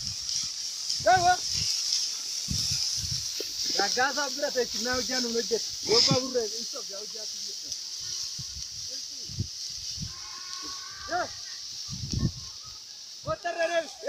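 A man shouts at cattle outdoors.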